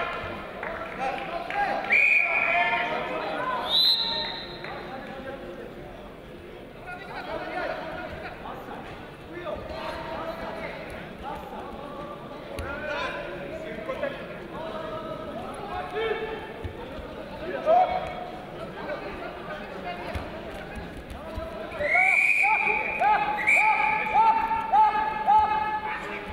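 A man shouts loudly in a large echoing hall.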